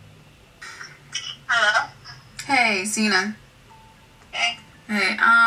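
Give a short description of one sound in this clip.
A young woman speaks expressively through a microphone.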